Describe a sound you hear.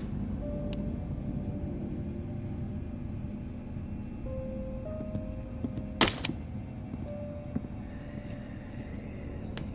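Footsteps thud slowly up wooden stairs.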